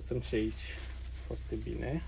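A paper tissue rustles as it is rubbed.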